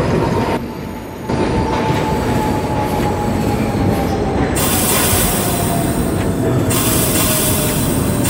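An electric train motor whines, slowly falling in pitch as the train slows.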